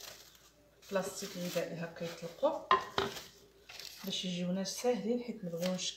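Plastic wrap crinkles and rustles as it is pulled off a roll.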